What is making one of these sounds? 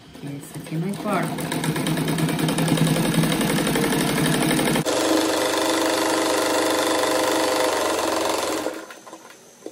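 A sewing machine whirs rapidly as it stitches.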